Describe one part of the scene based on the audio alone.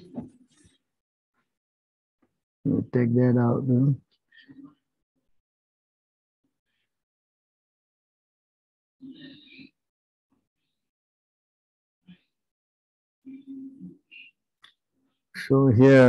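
An elderly man speaks calmly in bursts over an online call, with long pauses.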